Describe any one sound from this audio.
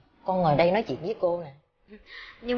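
An elderly woman speaks warmly, close to a microphone.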